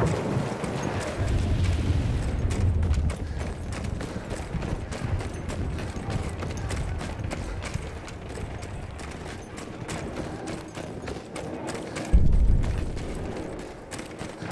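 Footsteps thud on a hard floor in an echoing space.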